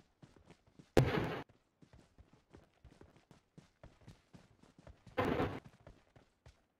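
Gunfire bursts out in short loud volleys.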